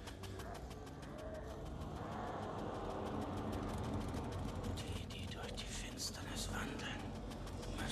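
A creature snarls loudly.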